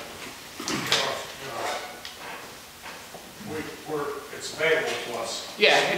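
A man speaks calmly nearby in an echoing room.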